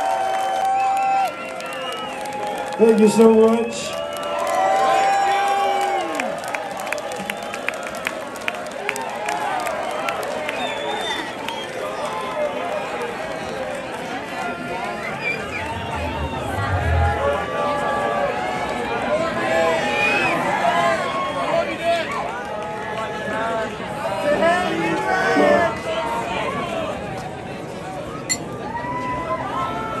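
A rock band plays loudly on a stage.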